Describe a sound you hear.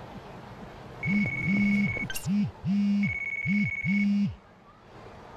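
A phone vibrates in short buzzing bursts.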